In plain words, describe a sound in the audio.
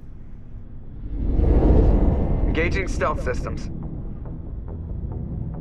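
A spaceship roars past with a deep rumble.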